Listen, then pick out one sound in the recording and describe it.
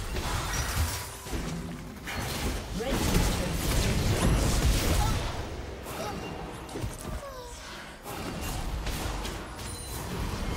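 Game spell effects whoosh and crackle in rapid bursts.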